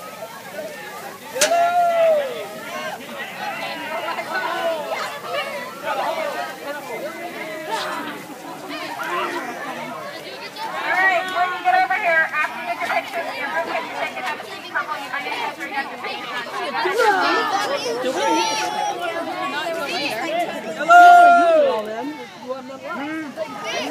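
A crowd of children and young people chatter and shout outdoors.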